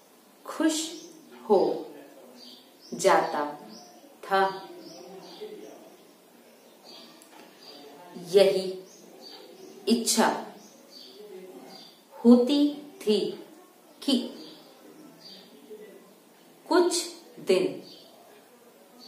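A young woman dictates slowly and close to the microphone, in short phrases with pauses between them.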